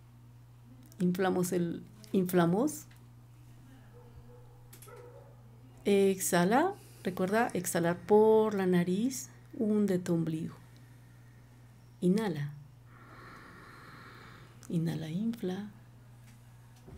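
A woman speaks calmly into a close microphone, in short bursts with pauses.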